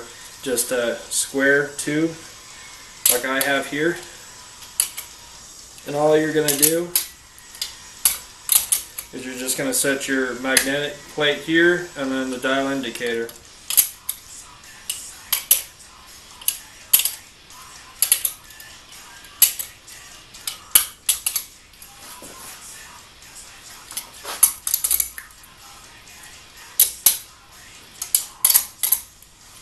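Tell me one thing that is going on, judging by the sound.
A metal wrench clicks and taps against an engine.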